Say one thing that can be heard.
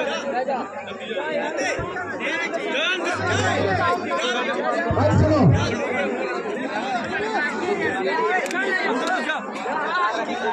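A large outdoor crowd chatters and shouts continuously.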